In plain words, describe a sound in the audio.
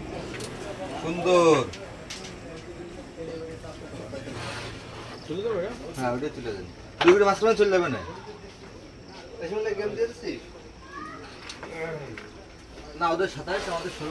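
Men talk with animation nearby.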